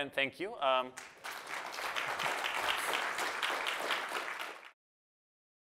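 An audience claps and applauds.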